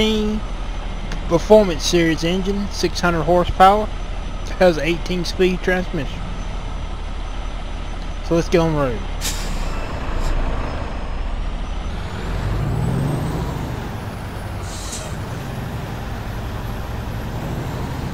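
A truck engine rumbles steadily at low speed.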